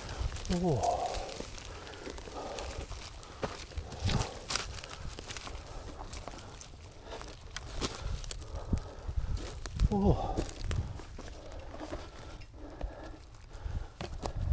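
Dry twigs and leaves rustle and snap close by.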